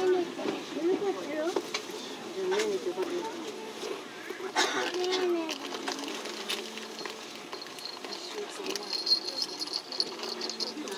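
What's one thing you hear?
A train rolls steadily along the rails, clattering over the joints.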